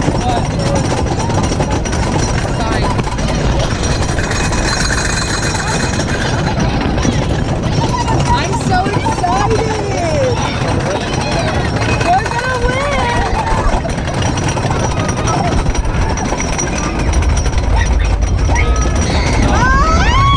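Wind roars loudly past.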